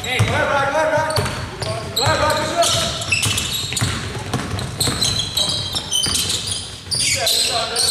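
A basketball bounces on the court in quick dribbles.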